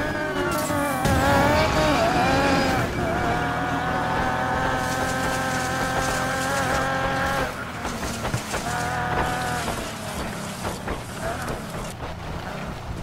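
Tyres skid and crunch over loose dirt and gravel.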